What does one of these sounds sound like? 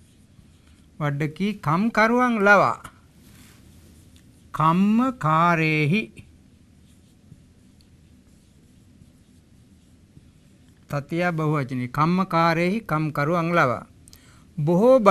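An elderly man speaks calmly and clearly into a close microphone, in short phrases with pauses.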